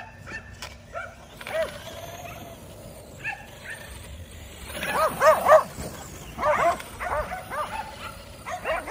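Several dogs bark and yelp excitedly outdoors.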